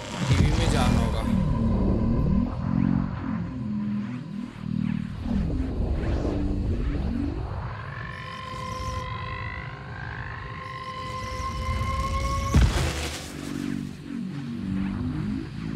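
A television hisses with static.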